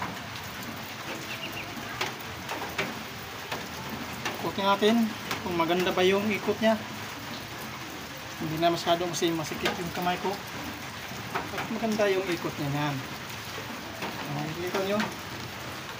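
Metal engine parts click and clink as they are turned by hand.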